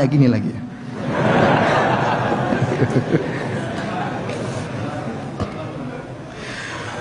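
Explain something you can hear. A crowd laughs.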